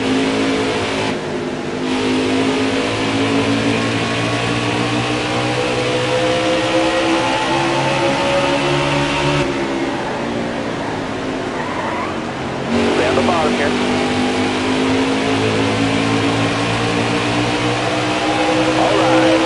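Race car engines roar loudly at high speed.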